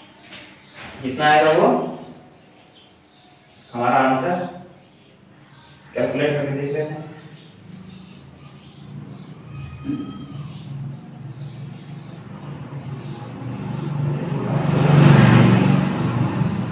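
A young man speaks loudly, explaining, in a room with some echo.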